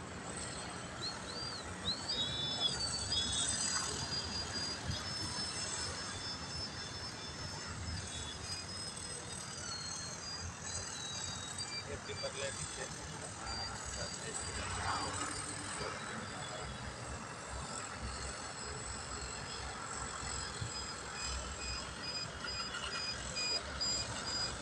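A small model plane engine whines high overhead, rising and falling in pitch.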